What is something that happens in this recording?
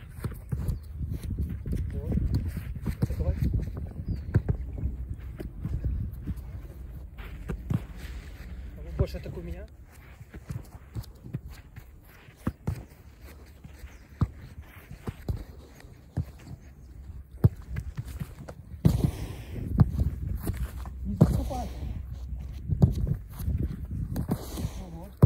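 A goalkeeper lands with a thump on artificial turf.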